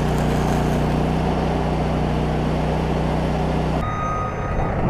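An electric welder buzzes and crackles steadily.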